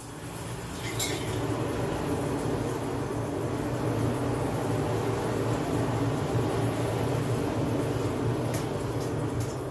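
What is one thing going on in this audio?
A forge fire roars steadily under a blower.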